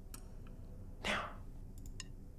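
A button clicks.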